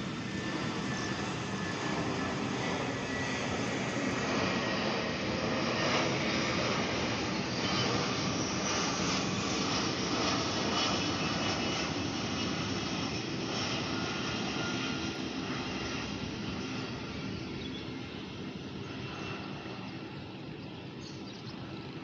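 A twin-engine jet airliner roars overhead on approach, then fades into the distance.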